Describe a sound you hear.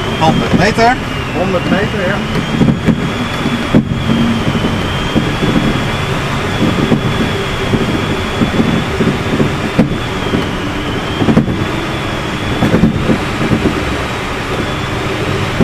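Wind rushes steadily over a glider's canopy in flight.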